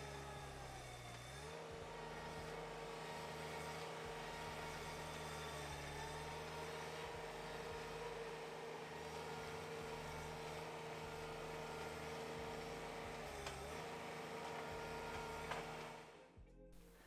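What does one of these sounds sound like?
A small tracked loader's engine hums steadily.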